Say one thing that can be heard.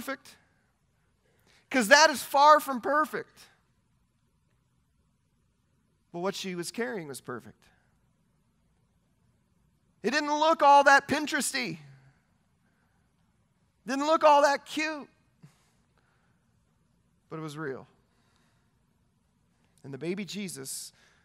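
A man speaks with animation into a headset microphone, in short bursts with pauses.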